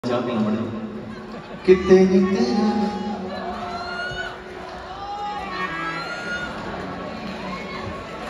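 A man sings through loudspeakers in a large echoing hall.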